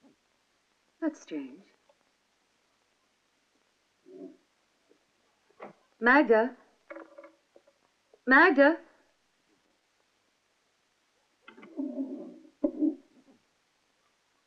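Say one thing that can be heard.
A young woman speaks up clearly nearby.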